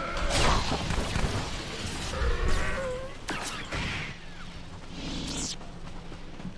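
Electric bolts crackle and buzz in quick bursts.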